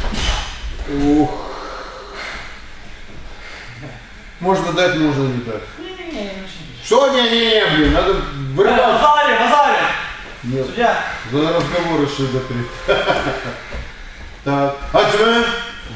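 A man speaks calmly in an echoing room.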